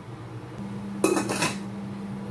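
A metal lid clanks down onto a pot.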